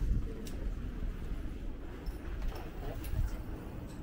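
A bicycle rolls past close by.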